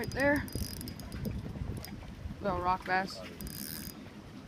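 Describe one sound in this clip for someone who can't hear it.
Water laps gently against a boat hull.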